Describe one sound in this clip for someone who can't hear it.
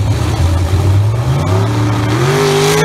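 A race car engine revs hard and roars as the car launches, its pitch climbing.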